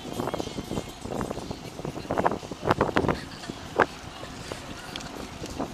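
A bicycle rattles and clicks as it rolls along a paved path.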